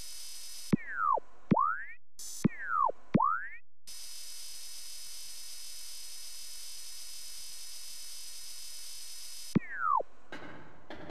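Short electronic swooping blips sound in quick pairs.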